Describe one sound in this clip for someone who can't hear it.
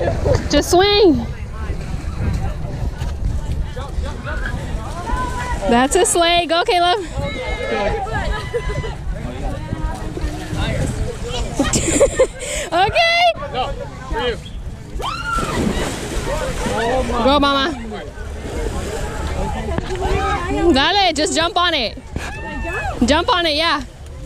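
Young women shout and cheer excitedly close by.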